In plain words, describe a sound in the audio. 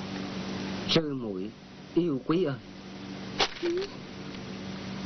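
A man reads out a letter aloud in a calm, deep voice.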